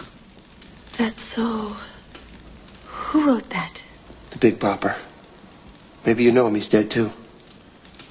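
A woman speaks quietly and seriously close by.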